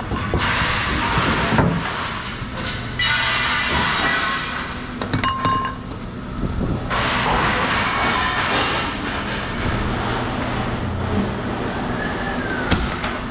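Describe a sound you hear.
Thin sheet metal rattles and scrapes as it is handled.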